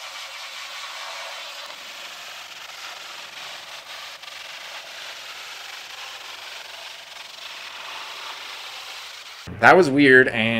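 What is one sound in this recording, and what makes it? A pressure washer sprays a hissing jet of water against a metal panel.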